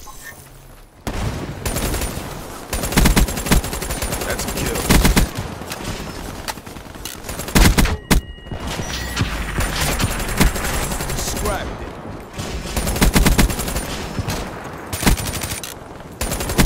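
Gunfire rattles in rapid bursts, close by.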